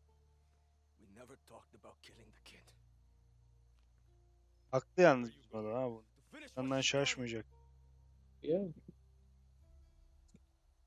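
A man speaks with feeling.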